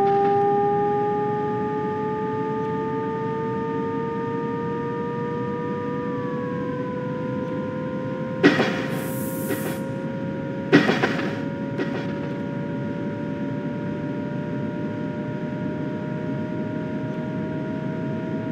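An electric train's motor hums steadily and slowly rises in pitch as it speeds up.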